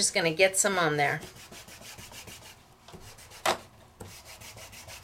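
A small ink pad dabs and rubs rapidly across paper.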